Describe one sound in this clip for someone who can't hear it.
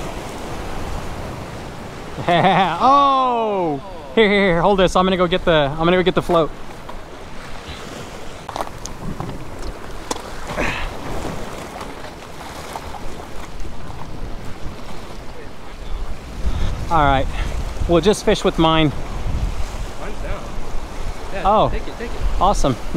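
Waves splash against rocks.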